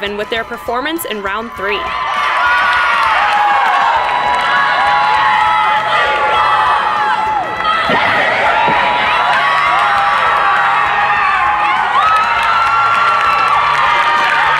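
A group of young girls shout and cheer loudly in a large echoing hall.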